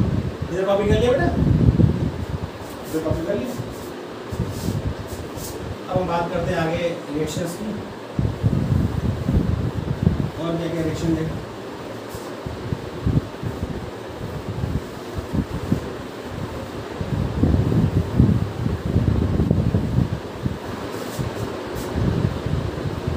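A middle-aged man speaks calmly and clearly, close by.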